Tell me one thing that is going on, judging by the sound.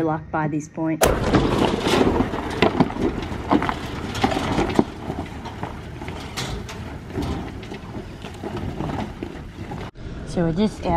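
A vehicle engine rumbles as it climbs over rough rocky ground.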